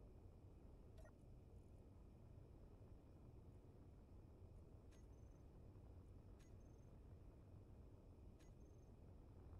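Short sharp clicks sound as menu buttons are pressed.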